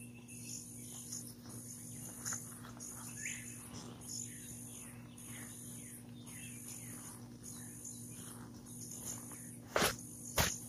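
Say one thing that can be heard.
A plastic tarp rustles and crinkles as it is handled.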